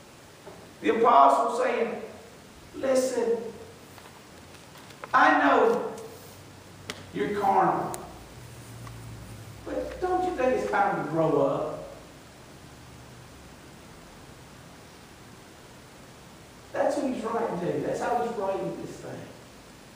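A middle-aged man preaches with animation through a microphone in an echoing hall, pausing between phrases.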